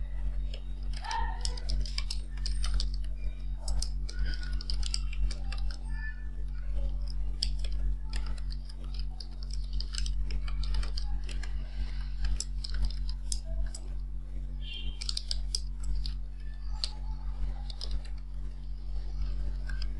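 Keys on a keyboard click quickly in bursts.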